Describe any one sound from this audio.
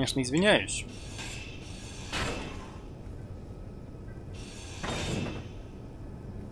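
A power grinder whirs as it grinds metal.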